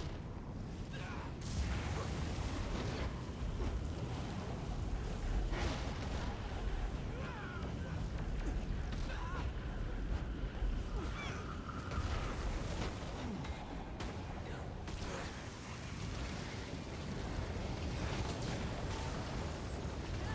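Fire spells roar and crackle.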